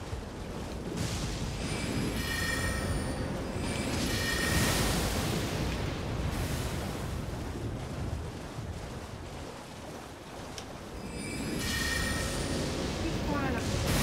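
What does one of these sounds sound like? A magic spell rings out with shimmering chimes.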